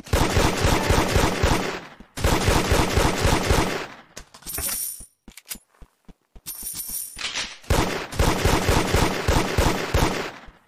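A pistol fires in rapid bursts of shots.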